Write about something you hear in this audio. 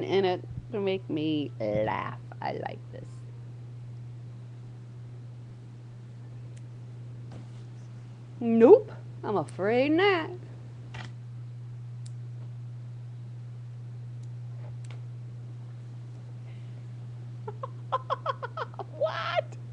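A woman speaks animatedly over an online call.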